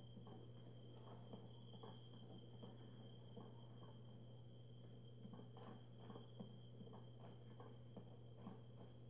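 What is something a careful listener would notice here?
Footsteps patter steadily over dirt and grass.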